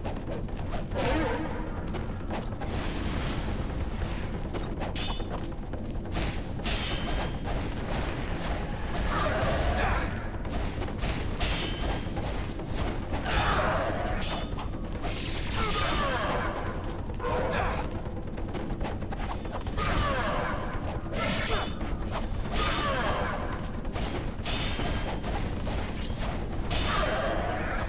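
Swords clash and swish in quick, sharp strikes.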